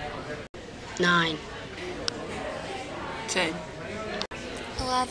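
A teenage girl speaks quietly, close by.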